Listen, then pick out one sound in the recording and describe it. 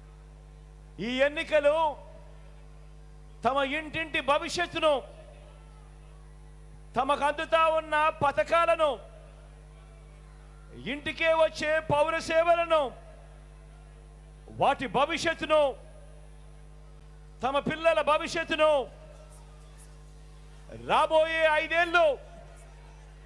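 A man speaks loudly into a microphone over a loudspeaker, in short bursts with pauses.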